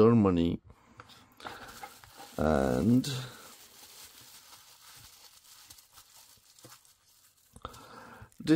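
Bubble wrap crinkles and rustles as it is unwrapped.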